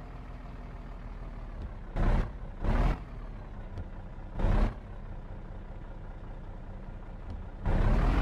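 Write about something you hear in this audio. A truck engine idles with a low steady rumble.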